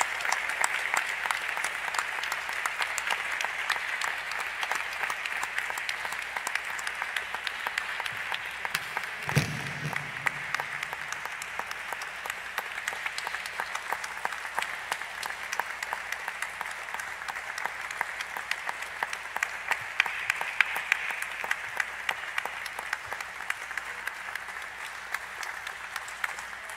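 Many people applaud steadily in a large hall.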